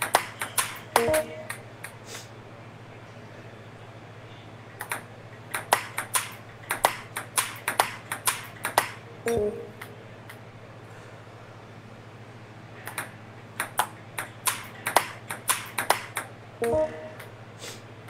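A short game chime sounds after each point.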